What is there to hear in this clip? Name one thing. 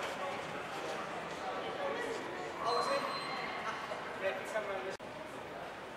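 Men and women talk quietly at a distance in a large echoing hall.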